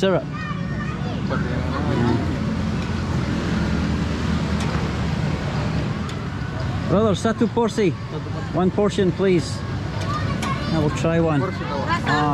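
A man talks nearby in a lively way.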